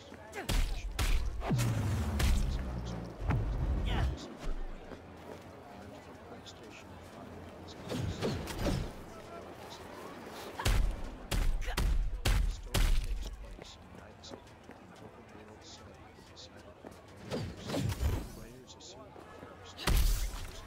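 Gunshots fire in loud, sharp bursts.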